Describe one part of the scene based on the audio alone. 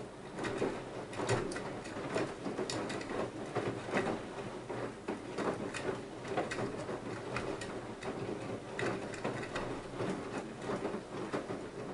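Water sloshes and splashes inside a turning washing machine drum.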